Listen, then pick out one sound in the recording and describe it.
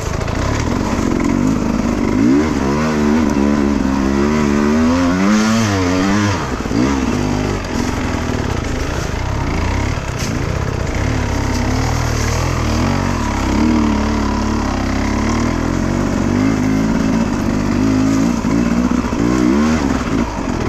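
Tyres crunch over dry leaves and dirt.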